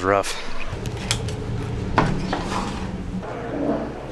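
A door latch clicks and the door swings open.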